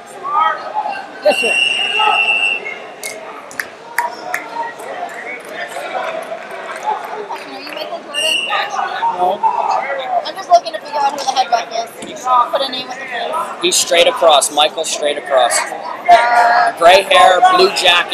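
Wrestling shoes squeak sharply on a mat.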